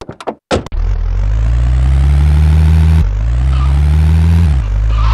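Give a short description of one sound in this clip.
A car engine hums steadily as a vehicle drives along.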